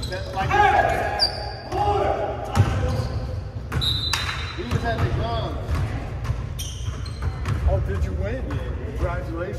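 Young players shout to each other across the echoing gym.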